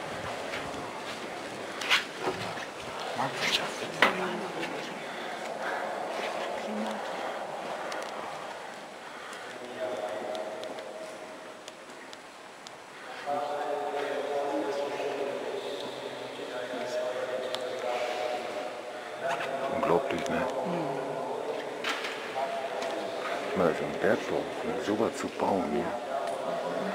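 Footsteps tap on a stone floor in a large echoing hall.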